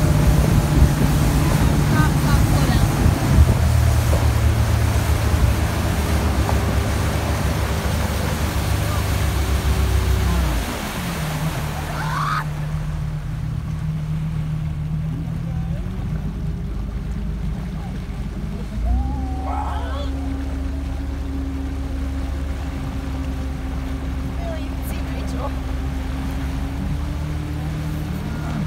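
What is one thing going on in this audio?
Water rushes and splashes in the boat's wake.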